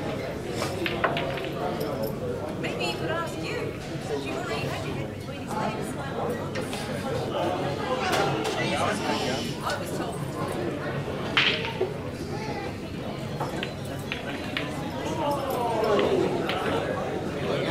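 Several men chatter in the background of a large hall.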